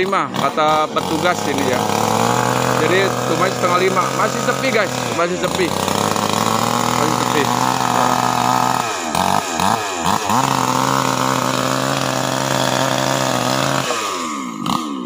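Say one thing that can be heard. A chainsaw engine runs steadily nearby.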